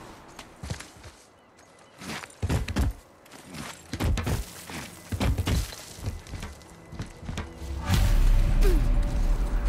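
Heavy footsteps thud and scrape on rock and ice.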